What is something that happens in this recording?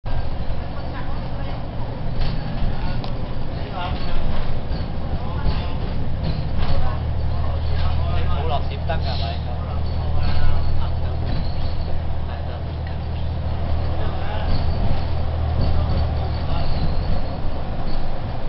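Tyres roll on a road with a steady rumble.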